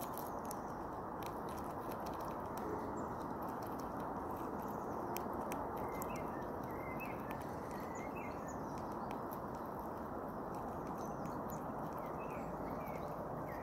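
A squirrel gnaws and crunches on a nut close by.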